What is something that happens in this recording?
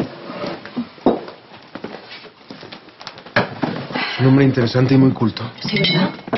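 Dishes clink on a table.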